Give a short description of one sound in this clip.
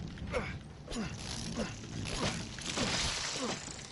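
Wood smashes and splinters.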